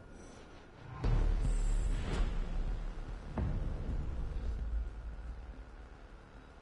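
A deep whooshing rumble swells and slowly fades.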